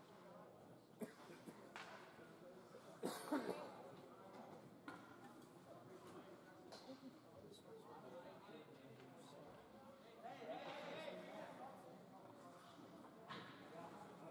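Ice hockey sticks clack against a puck, echoing in a large indoor rink.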